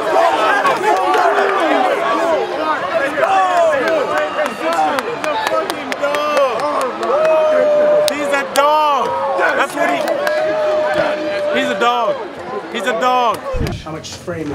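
A group of young men shout and cheer loudly together.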